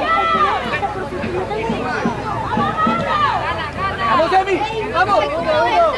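Children shout excitedly across an outdoor field.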